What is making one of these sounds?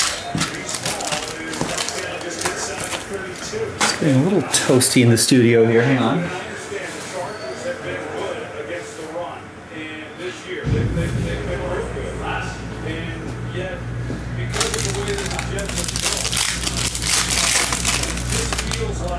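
Foil wrappers crinkle and rustle as hands handle them.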